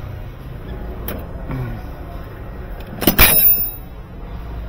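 A metal drawer slides open with a clatter.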